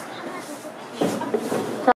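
A young woman speaks briefly, close by.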